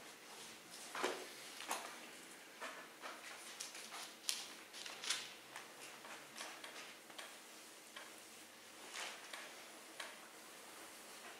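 Book pages rustle as they are handled.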